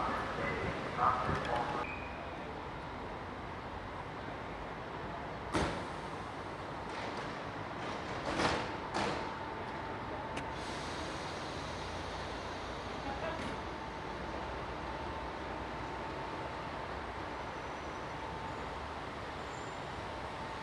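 A train's engine hums steadily as it stands at the platform.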